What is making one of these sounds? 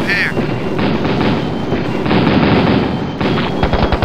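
Explosions boom repeatedly.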